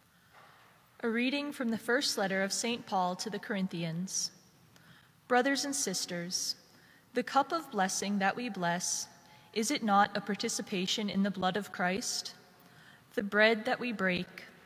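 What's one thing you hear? A woman reads out steadily through a microphone in a large echoing hall.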